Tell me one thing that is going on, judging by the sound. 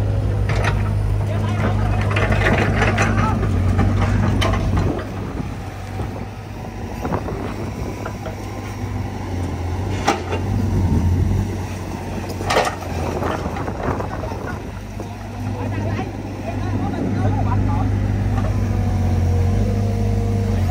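Diesel engines of two small excavators rumble steadily.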